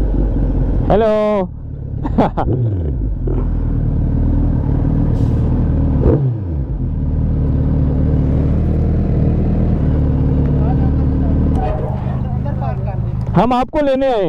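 A motorcycle engine revs up sharply in short bursts.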